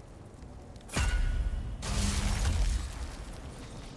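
A deep whooshing rumble bursts out and fades.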